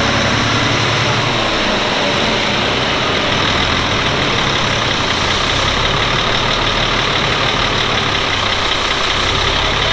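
A large diesel engine runs loudly with a steady, rattling roar.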